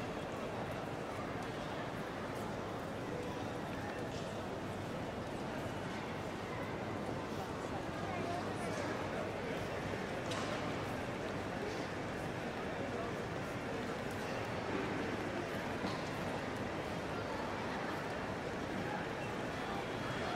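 A crowd murmurs steadily throughout a large echoing hall.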